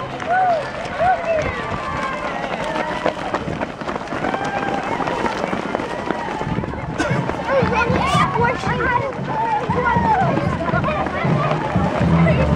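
Many feet patter on pavement as runners pass close by.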